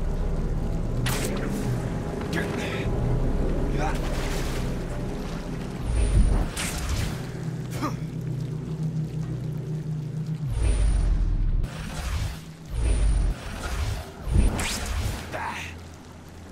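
Air whooshes sharply as a figure leaps and swings.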